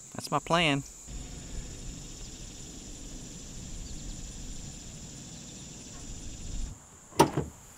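A pickup truck's engine rumbles low and steady.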